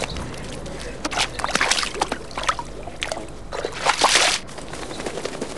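A dog splashes through a muddy puddle.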